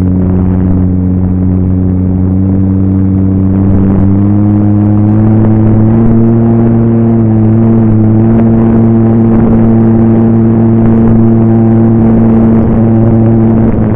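A small model plane engine drones loudly and steadily, rising slightly in pitch.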